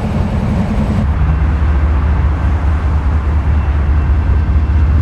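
A freight train rumbles past with a deep, steady drone.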